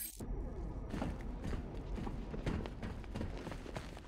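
Footsteps echo across a large, hard hall.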